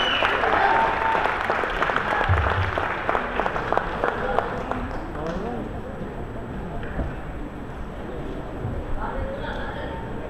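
A live band plays amplified music with electric guitars.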